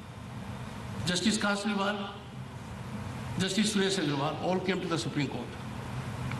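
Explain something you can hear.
An elderly man speaks slowly and formally into a microphone.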